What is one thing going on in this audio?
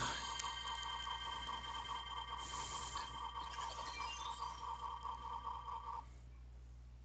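A shimmering magical tone pulses rapidly.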